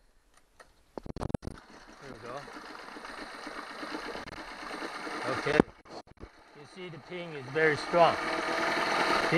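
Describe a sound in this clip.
A small outboard engine sputters, starts and revs unevenly up close.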